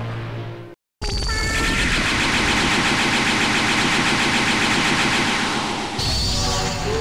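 Game energy blasts roar and crackle loudly.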